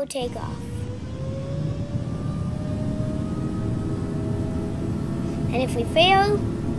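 Jet engines roar with a whine that slowly rises in pitch.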